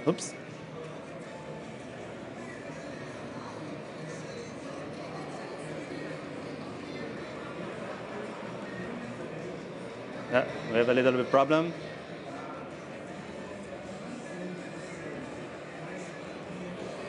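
A man speaks calmly through a microphone in a large hall.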